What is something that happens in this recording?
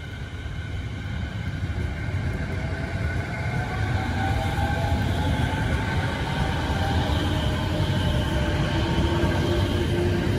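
A train pulls away, its motors humming and rising in pitch as it speeds up.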